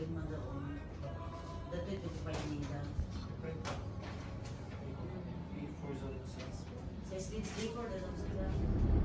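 Young people chatter quietly in a room.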